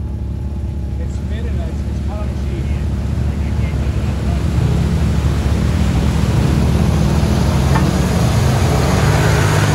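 An off-road buggy engine growls as it churns through mud.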